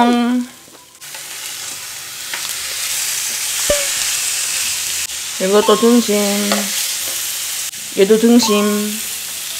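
Meat sizzles loudly on a hot grill.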